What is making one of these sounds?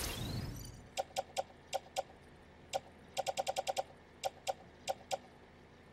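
Short electronic beeps sound in quick bursts.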